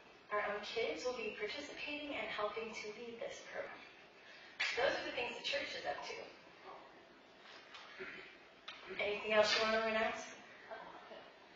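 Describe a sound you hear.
A woman speaks calmly at a distance in a large echoing room.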